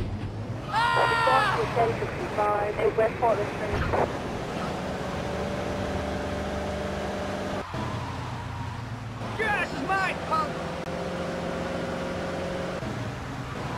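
A car engine hums steadily and revs as the car drives off.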